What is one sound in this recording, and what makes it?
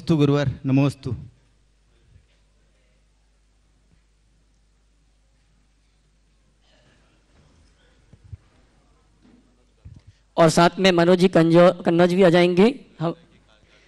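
A middle-aged man speaks through a microphone in a calm, questioning tone.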